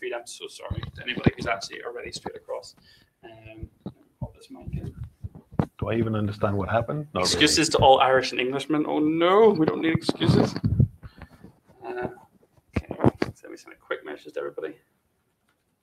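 A second man talks nearby.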